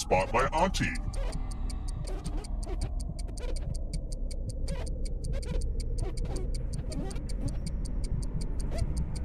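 A stopwatch ticks rapidly and steadily.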